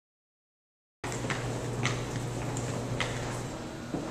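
Footsteps climb a stairway in an echoing hallway.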